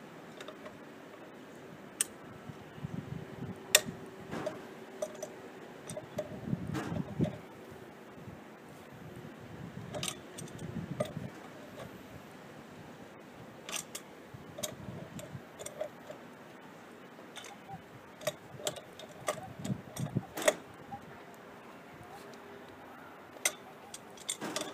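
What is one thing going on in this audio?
A pipe fitting creaks and squeaks as it is twisted.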